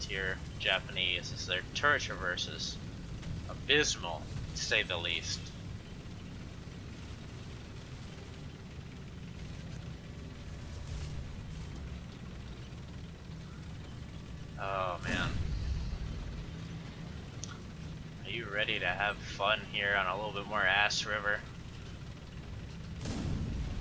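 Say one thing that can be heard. A tank's tracks clatter over rough ground.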